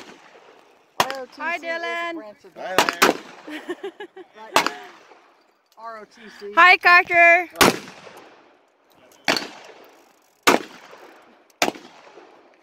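Pistol shots crack one after another outdoors, each echoing briefly.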